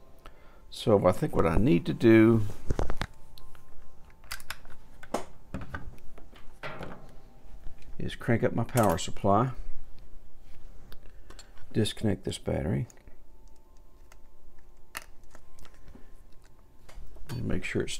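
Small plastic parts click and tap on a hard surface.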